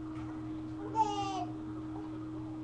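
A baby squeals briefly, close by.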